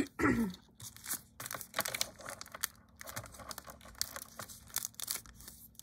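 A plastic film crinkles and rustles as it is handled.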